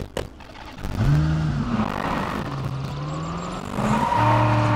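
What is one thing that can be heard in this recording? A car engine starts and revs.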